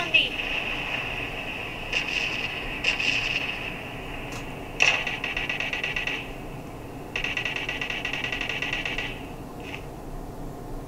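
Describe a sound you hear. A phone game plays short bursts of rapid, crackling sound effects through a small speaker.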